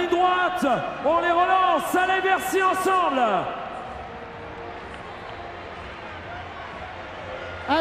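A crowd cheers in a large echoing hall.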